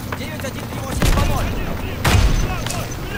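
Gunfire cracks and booms.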